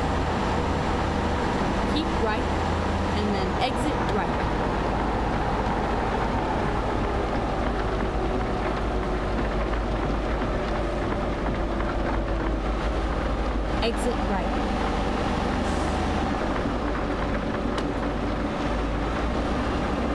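Tyres roll on the road with steady noise.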